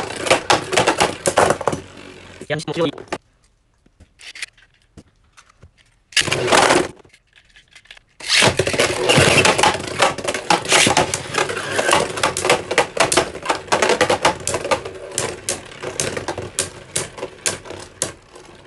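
Spinning tops rattle and clatter against a plastic dish, clashing in quick sharp clicks.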